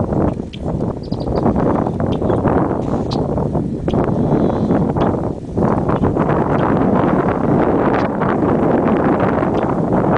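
A blackbird calls from a reed stalk.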